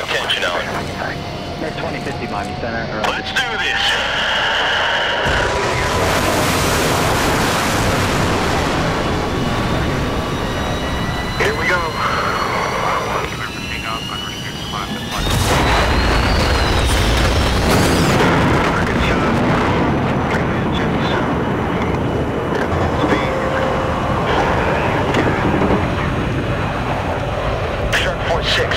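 A jet engine roars steadily and grows louder as the jet launches.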